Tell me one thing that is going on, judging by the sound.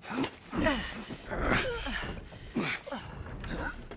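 A man's clothes and boots scrape against wooden planks as he climbs over a wall.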